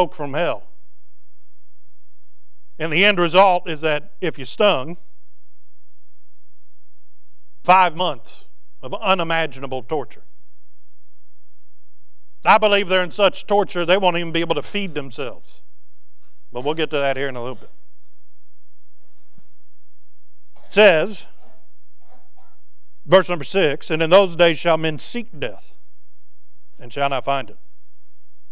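A man preaches through a microphone in phrases with pauses, in a room with some echo.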